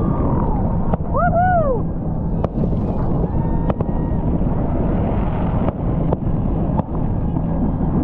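Fireworks boom and crackle in the distance.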